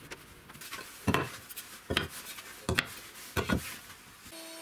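Wooden sticks clatter onto a wooden table.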